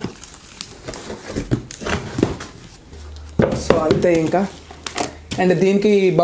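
Bubble wrap crinkles and rustles under a hand.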